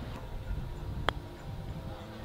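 A golf club taps a ball with a light click.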